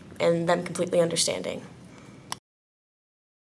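A young woman speaks calmly at close range.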